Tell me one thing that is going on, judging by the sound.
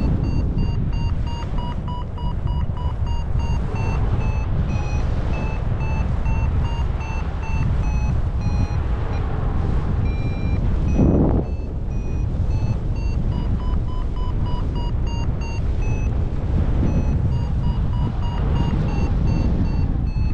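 Wind rushes loudly and steadily past the microphone outdoors.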